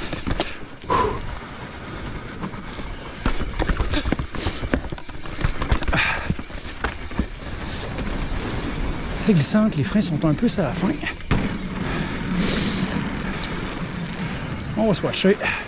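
Bicycle tyres rumble over wooden planks.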